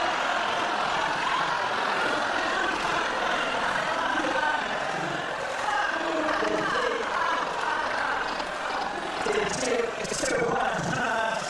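A man laughs loudly and heartily.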